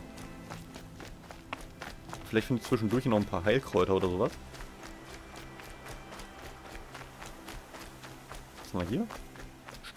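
Quick footsteps run along a dirt path.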